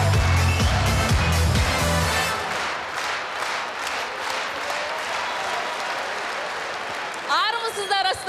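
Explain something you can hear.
A large audience laughs and applauds loudly in an echoing hall.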